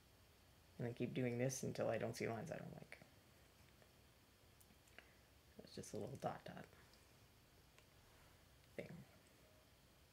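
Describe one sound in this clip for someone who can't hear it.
A woman talks calmly into a microphone, close up.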